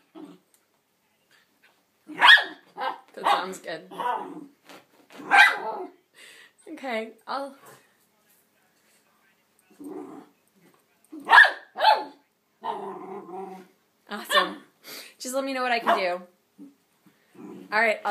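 A dog paws and noses at a crinkly toy on carpet.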